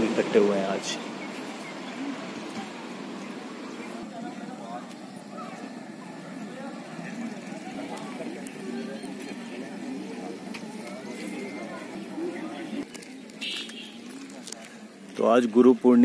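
A crowd murmurs outdoors in the distance.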